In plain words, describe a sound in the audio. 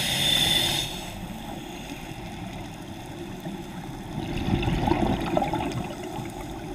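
Water rumbles in a low, steady muffled wash.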